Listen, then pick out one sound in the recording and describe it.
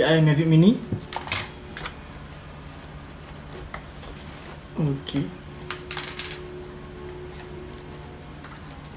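Plastic packaging and small objects rustle and clack as a man handles them.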